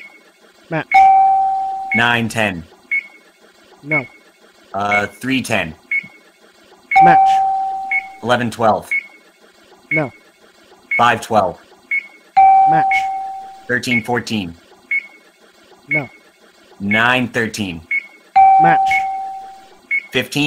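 A single steady beep sounds now and then.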